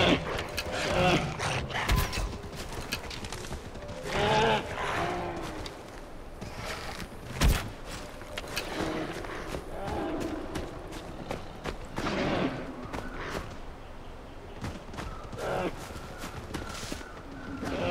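Footsteps rustle through tall grass and ferns.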